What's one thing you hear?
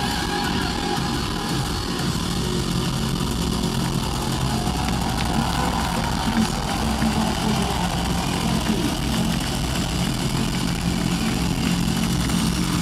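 A rock band plays loudly through a large hall's speakers.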